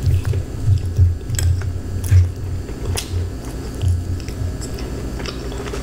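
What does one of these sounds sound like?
A fork scrapes and clinks in a bowl.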